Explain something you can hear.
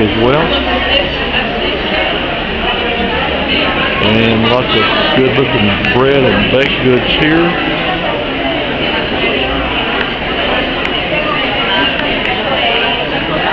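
A crowd of people chatters steadily in a large echoing hall.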